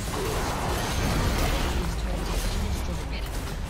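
A tower crumbles with a heavy crash.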